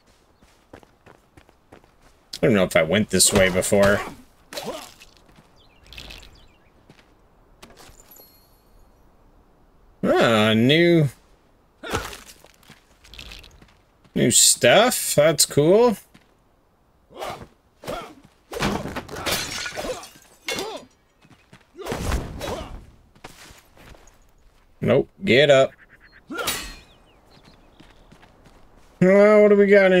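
Footsteps fall on stone and grass.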